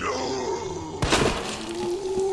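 A gunshot fires once, loud and sharp.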